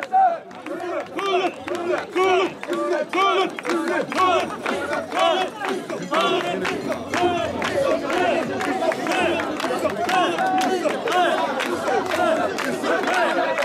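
A crowd of men chants loudly and rhythmically outdoors.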